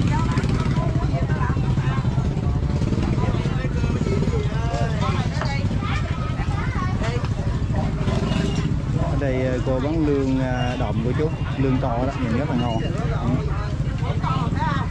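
Women chat nearby.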